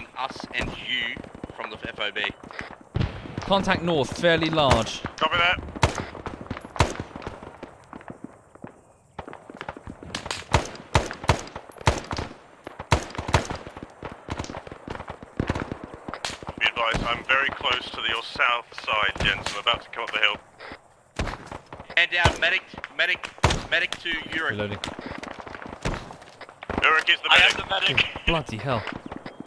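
A rifle fires shots in quick bursts, close by.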